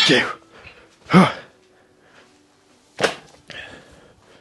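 A man grunts and strains loudly, close by.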